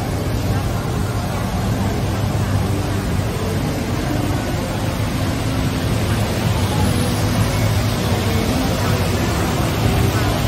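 City traffic hums steadily below, outdoors.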